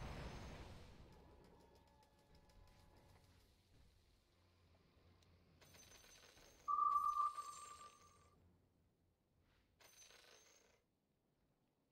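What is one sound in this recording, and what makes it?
Video game battle effects clash and chime in short bursts.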